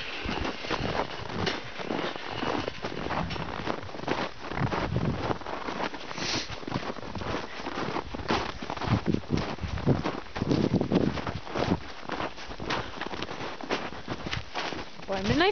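Footsteps crunch through snow close by.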